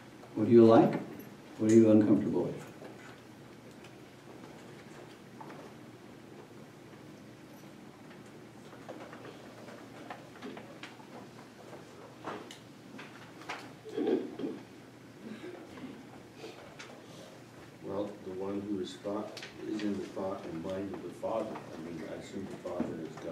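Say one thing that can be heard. A middle-aged man reads aloud calmly, close by, with long pauses.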